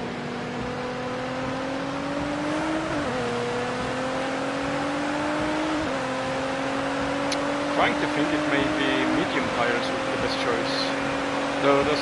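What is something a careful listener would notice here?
A racing car engine revs up and drops as gears shift.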